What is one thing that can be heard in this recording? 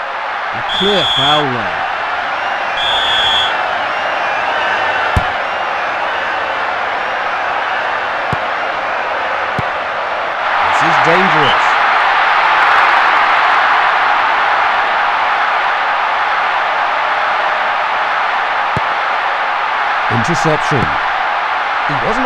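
A stadium crowd roars steadily and swells louder partway through.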